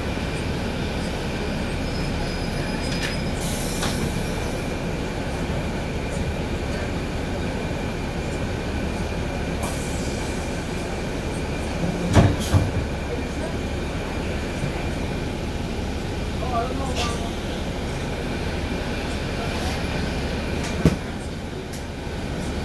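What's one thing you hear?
A bus engine rumbles steadily as the bus rides through town.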